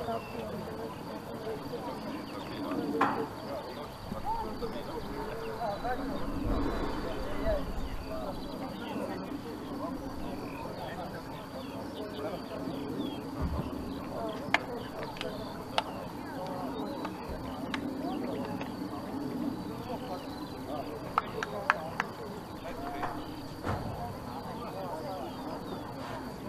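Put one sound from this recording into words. Players call out and chatter at a distance outdoors.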